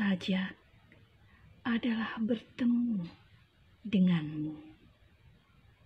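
A middle-aged woman speaks close to the microphone with animation, in short bursts.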